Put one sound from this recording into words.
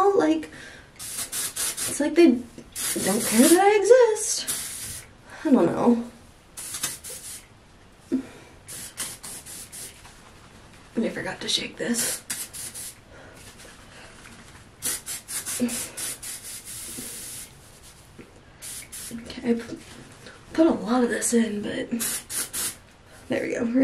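Hairspray hisses in short bursts.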